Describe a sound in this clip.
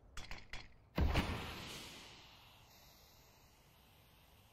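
A smoke grenade bursts with a loud pop and hisses as it spreads.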